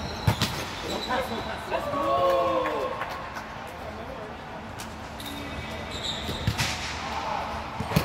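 Young men shout and call out to each other during play.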